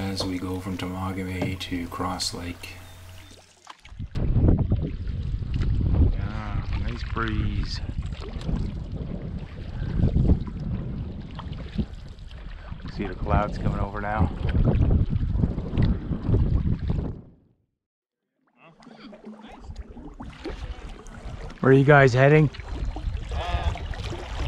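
A paddle splashes through water in steady strokes.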